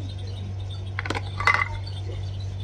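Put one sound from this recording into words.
A plastic toy egg clatters onto a toy pan.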